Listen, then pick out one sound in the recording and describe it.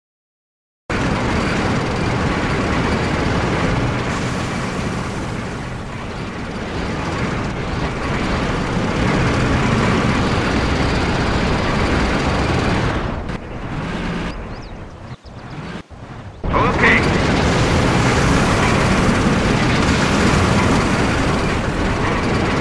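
Tank engines rumble and clank as they roll along.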